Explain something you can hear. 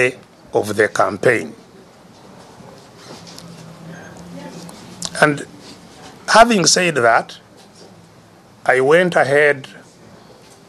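An elderly man speaks emphatically in short bursts, heard through a microphone.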